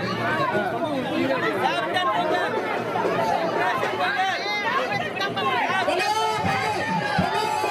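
A crowd of men and women talks and shouts loudly outdoors.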